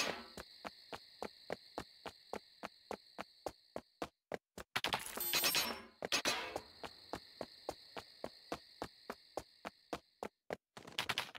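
Footsteps crunch steadily through grass and leaves.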